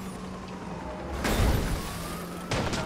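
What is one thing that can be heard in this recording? A van crashes into a car with a loud bang.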